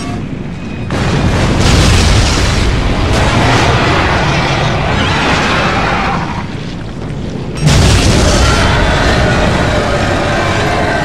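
A huge creature thrashes and splashes in the water.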